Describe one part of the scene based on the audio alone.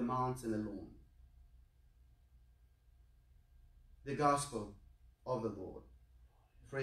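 A man speaks slowly and solemnly, with long pauses between phrases.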